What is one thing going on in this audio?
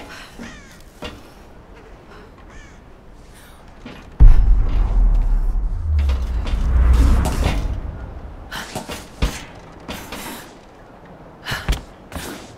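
Footsteps clang on a corrugated metal roof.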